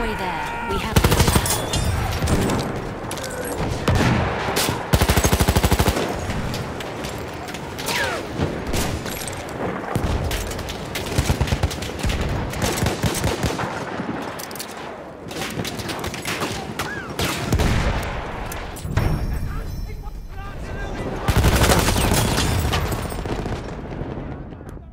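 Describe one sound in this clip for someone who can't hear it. Explosions boom and rumble around.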